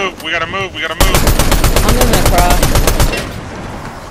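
Rapid gunfire rattles in a long burst.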